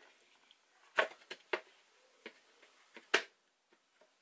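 Plastic parts click and knock as hands handle them.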